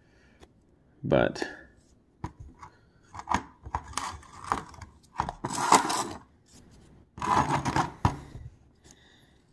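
A wooden stick scrapes and smears thick paste.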